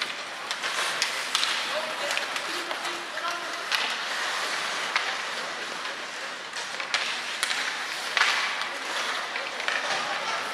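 Hockey sticks clack against a puck in a large echoing arena.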